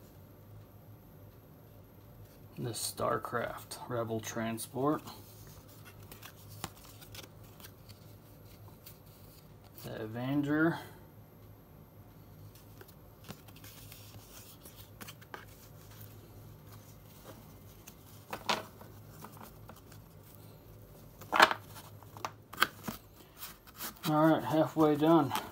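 Cardboard cards tap and rustle as hands flip through them.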